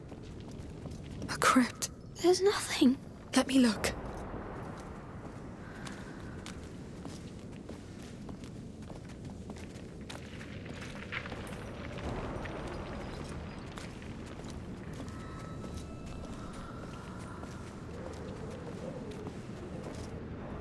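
Footsteps tap on a stone floor in a large echoing hall.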